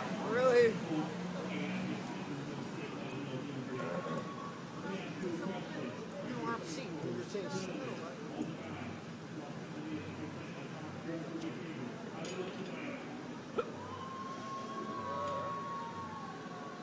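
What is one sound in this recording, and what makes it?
Men talk at a distance outdoors.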